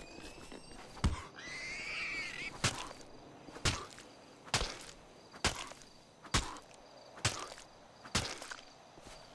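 Heavy blows thud again and again at a steady pace.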